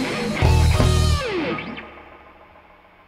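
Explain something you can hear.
A band strikes a loud chord that rings out and fades.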